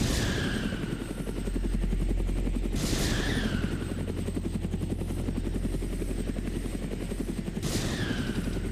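Rockets launch with a sharp whoosh that fades away.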